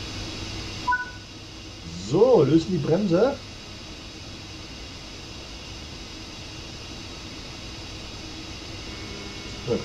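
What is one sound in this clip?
An electric locomotive hums steadily while standing still.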